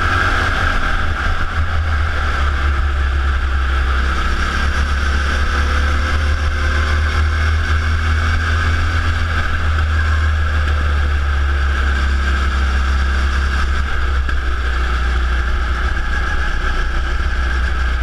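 A go-kart engine buzzes loudly up close, rising and falling in pitch as it speeds up and slows.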